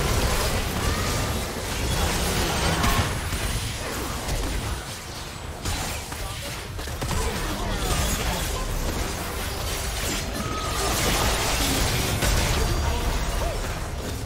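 Spell effects burst and whoosh in quick succession during a fight.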